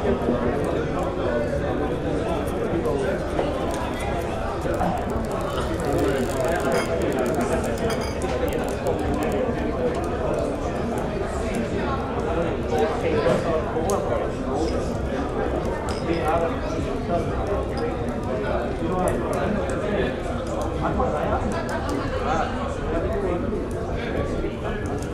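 A fire crackles in a hearth.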